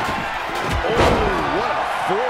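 A body crashes down onto the ring with a loud impact.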